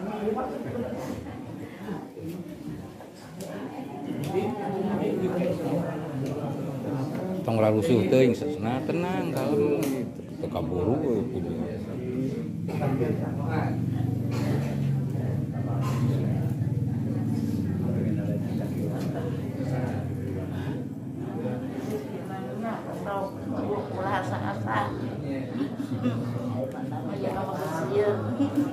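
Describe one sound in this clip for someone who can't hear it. Several women and men talk with emotion close by.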